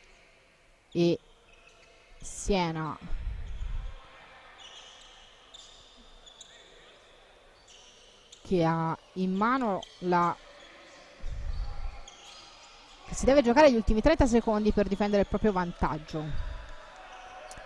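Male players shout loudly in an echoing sports hall.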